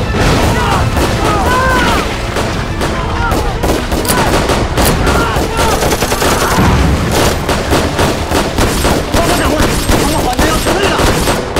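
Gunfire cracks rapidly all around.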